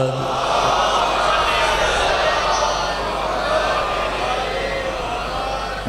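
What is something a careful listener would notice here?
A man recites with feeling into a microphone, heard through loudspeakers.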